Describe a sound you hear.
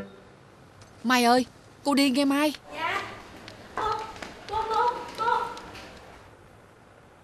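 An older woman speaks, close by.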